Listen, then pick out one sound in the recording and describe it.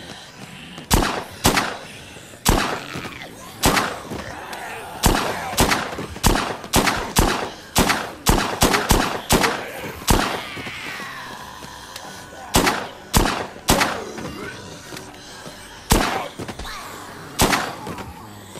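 A handgun fires sharp shots, one after another.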